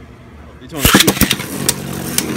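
Spinning tops are launched into a plastic arena with a sharp clatter.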